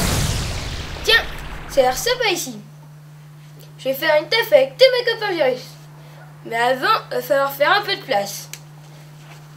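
A boy speaks to the listener with animation.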